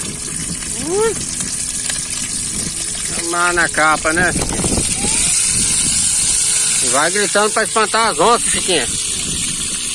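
Oil sizzles steadily in a frying pan.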